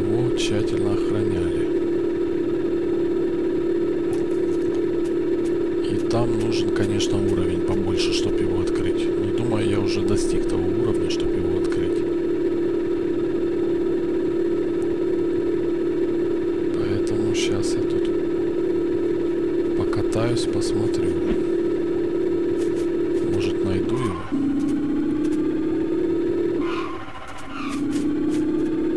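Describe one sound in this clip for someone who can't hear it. An engine drones steadily, dropping in pitch briefly near the end.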